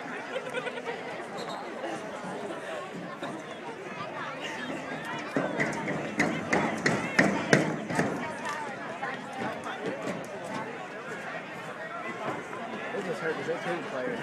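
A stadium crowd chatters and cheers outdoors in the open air.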